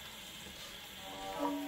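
A gramophone begins to play old music.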